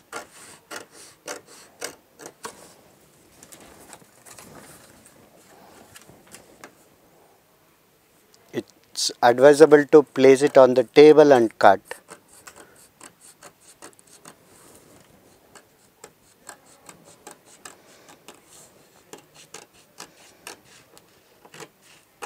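Scissors snip through stiff paper.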